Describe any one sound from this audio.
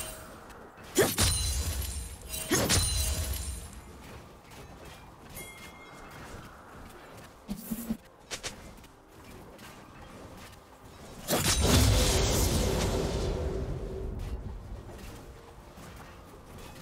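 Game spell effects burst and crash with deep booms.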